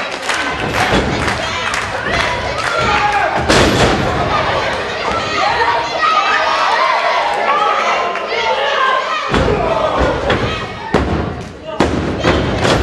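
Bodies slam onto a wrestling ring's canvas with loud thuds.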